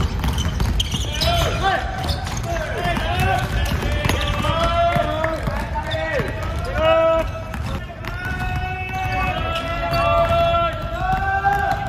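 Basketballs thump as they bounce on the floor.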